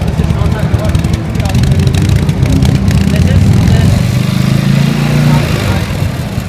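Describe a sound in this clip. A motorcycle engine revs up and then settles down.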